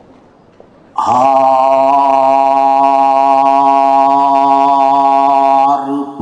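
A man sings a long, loud, steady note through a microphone.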